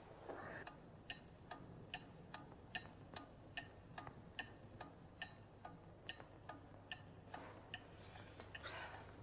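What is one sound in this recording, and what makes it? A pendulum clock ticks steadily.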